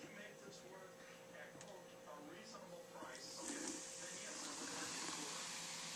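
Liquid pours from a jug into a plastic container.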